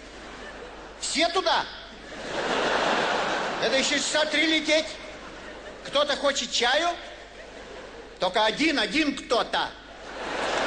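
An elderly man reads out with expression through a microphone.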